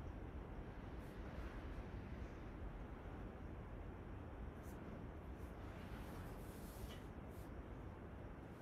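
Clothing rustles softly against a mat.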